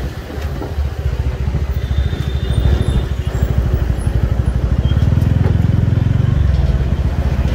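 A truck engine rumbles close ahead.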